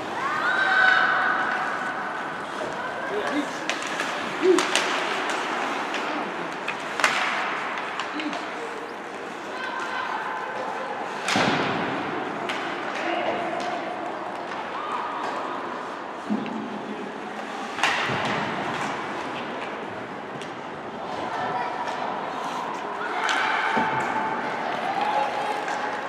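Skates scrape and hiss across ice.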